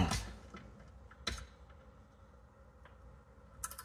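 Metal parts click and knock on an engine.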